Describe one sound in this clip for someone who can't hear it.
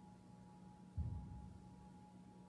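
A metal cup is set down on a table with a dull thud.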